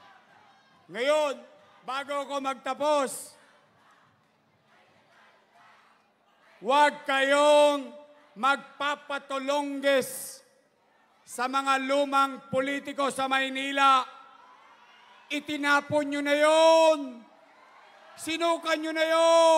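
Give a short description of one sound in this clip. A man shouts forcefully into a microphone over loudspeakers.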